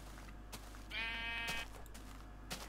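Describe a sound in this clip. A sheep bleats nearby.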